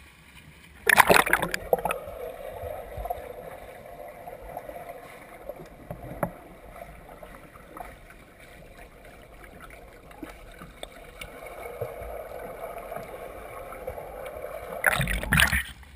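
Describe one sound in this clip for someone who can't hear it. Water churns and rumbles, muffled underwater, as a swimmer strokes past.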